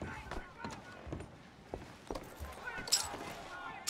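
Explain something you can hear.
Boots thud on creaking wooden floorboards.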